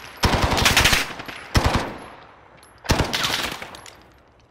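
Bursts of rapid gunfire ring out close by.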